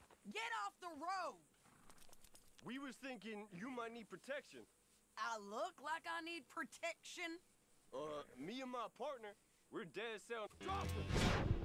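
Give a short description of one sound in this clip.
A young man talks calmly into a close microphone.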